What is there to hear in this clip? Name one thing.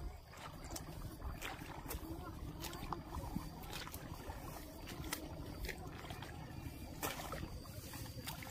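Rice seedlings rustle and swish as they are pulled from wet mud.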